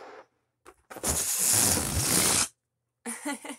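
Air rushes noisily out of a balloon.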